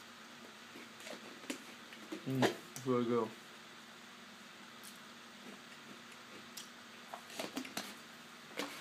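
A plastic cup rustles and crinkles in a man's hands.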